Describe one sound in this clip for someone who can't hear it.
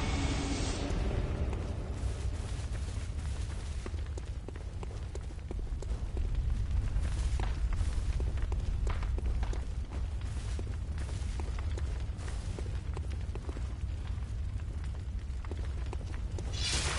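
Footsteps crunch steadily over grass and stone.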